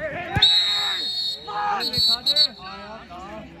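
A referee's whistle blows shrilly in sharp blasts.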